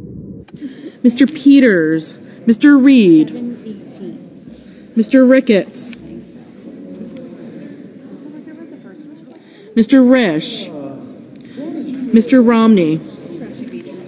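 A man calls out names through a microphone in a large echoing hall.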